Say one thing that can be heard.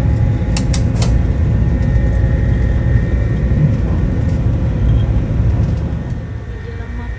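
Strong wind rumbles and buffets outdoors.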